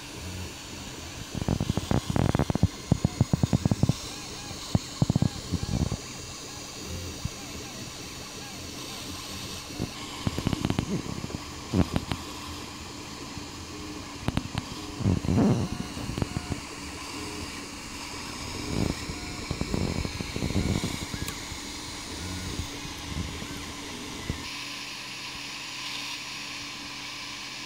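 A cooling fan hums steadily.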